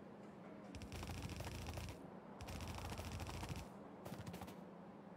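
Quick footsteps patter on a hard floor in short bursts.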